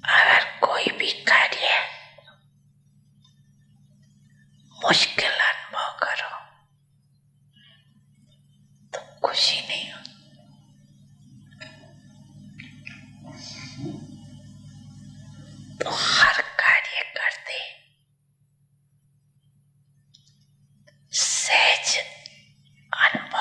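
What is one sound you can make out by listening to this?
A man speaks into a microphone in short bursts, heard through a loudspeaker.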